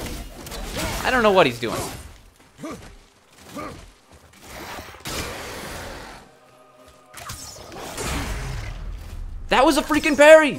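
Weapon blows thud and clash in a fight.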